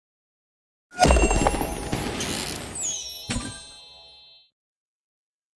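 Bright magical chimes sparkle and fade.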